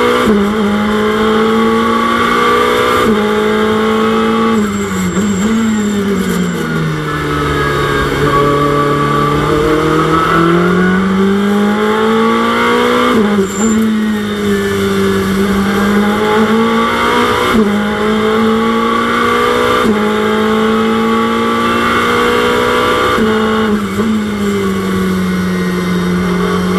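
A car engine hums steadily, its pitch rising and falling as the car drives.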